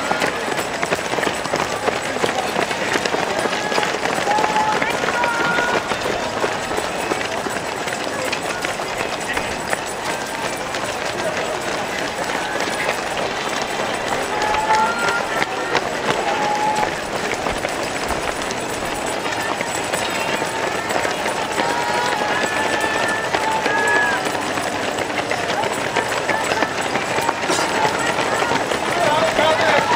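A crowd of spectators cheers and shouts nearby, outdoors.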